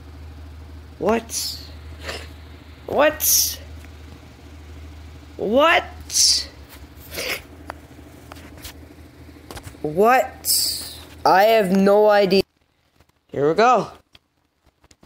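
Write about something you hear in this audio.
A boy speaks loudly and with animation, close to the microphone.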